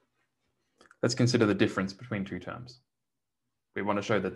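A man speaks calmly through a microphone, as if giving a lecture.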